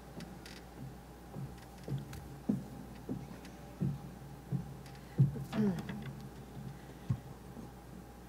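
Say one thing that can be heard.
Footsteps knock across a wooden stage.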